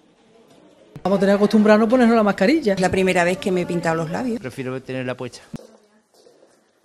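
An older woman speaks with animation into a close microphone.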